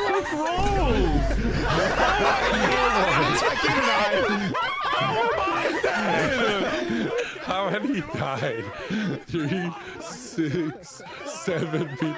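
Men laugh loudly over headset microphones.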